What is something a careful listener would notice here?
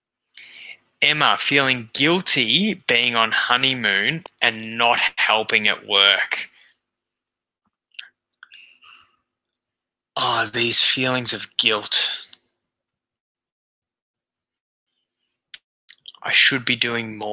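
A man speaks calmly over a headset microphone, as if on an online call.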